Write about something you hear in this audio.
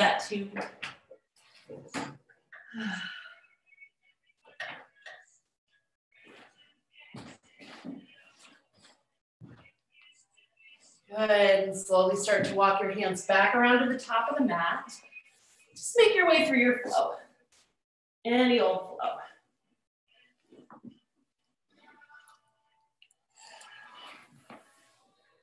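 A woman speaks calmly through an online call, giving guidance with pauses.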